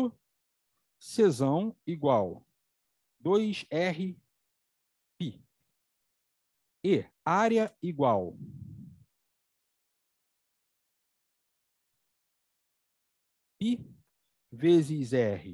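A middle-aged man speaks calmly through a microphone in an online call, pausing often.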